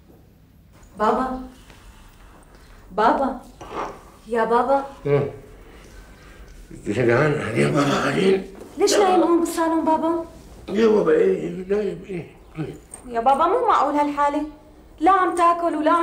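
An older man speaks with agitation, close by.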